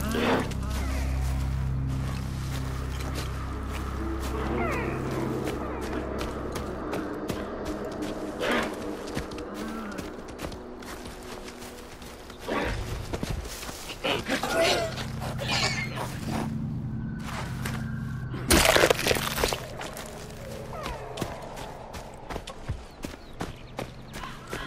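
Footsteps rustle through tall grass and ferns.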